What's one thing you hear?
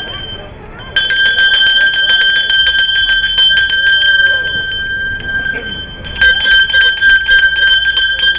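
A handbell rings loudly and repeatedly, close by.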